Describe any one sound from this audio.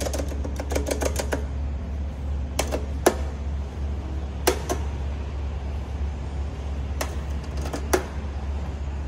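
Fingers tap and click on metal buttons.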